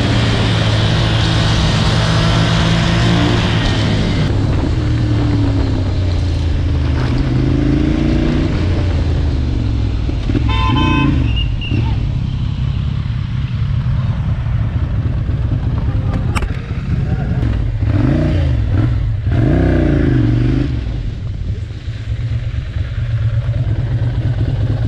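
A motorcycle engine rumbles steadily close by and rises and falls as it revs.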